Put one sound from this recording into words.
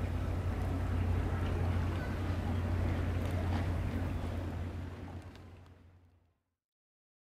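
A small boat engine hums steadily across the water.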